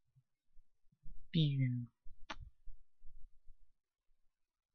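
Punches thud dully against a block, again and again.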